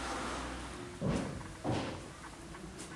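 A heavy wooden door thuds as it swings open.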